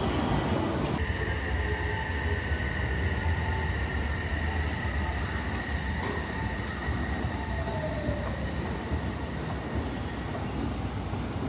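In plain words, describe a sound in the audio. An escalator motor whines with a steady high tone.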